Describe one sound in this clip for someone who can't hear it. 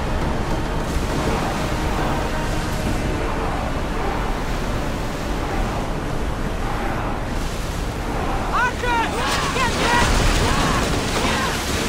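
Waves rush and splash against a ship's hull.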